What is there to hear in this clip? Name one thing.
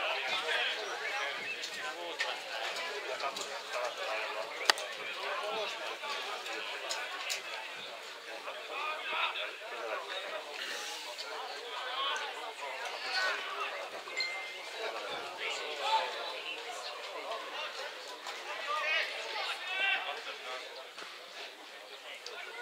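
Adult men and women chat nearby outdoors.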